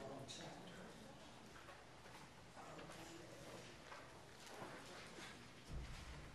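An elderly woman speaks calmly into a microphone in an echoing hall.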